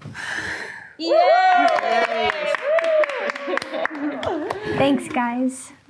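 Several people cheer and whoop together.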